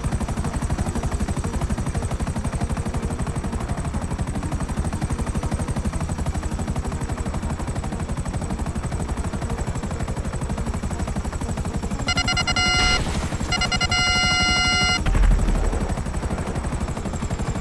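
A helicopter's rotor thumps in flight.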